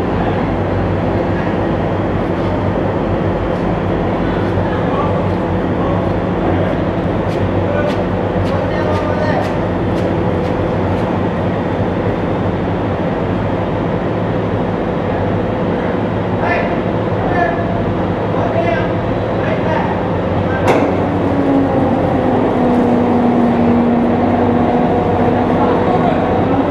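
Steel tracks clank and squeal as a tracked amphibious assault vehicle rolls over a steel deck.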